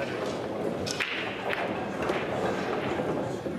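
Billiard balls clack together on a table.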